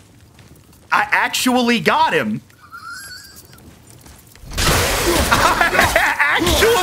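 A man laughs loudly into a microphone.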